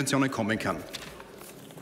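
A man speaks firmly into a microphone in a large hall.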